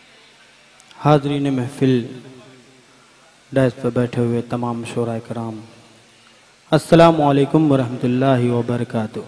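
A young man recites loudly through a microphone in a large reverberant hall.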